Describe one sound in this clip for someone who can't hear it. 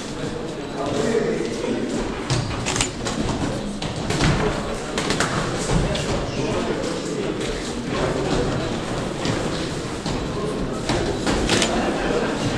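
Sneakers squeak and shuffle on a canvas floor.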